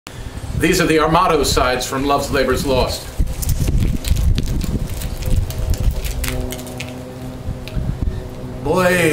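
A middle-aged man speaks loudly and theatrically close by.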